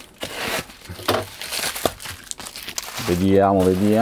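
A plastic package crinkles and rustles as a hand handles it.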